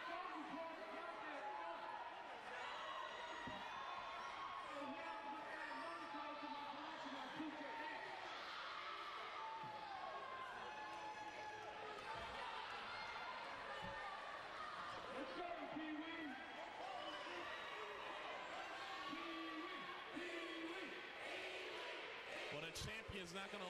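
A crowd murmurs and cheers in the background.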